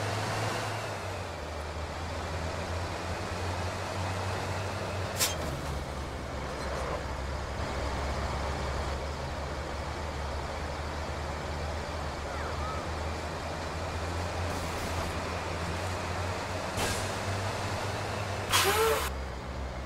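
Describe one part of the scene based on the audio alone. A truck engine rumbles steadily as it drives.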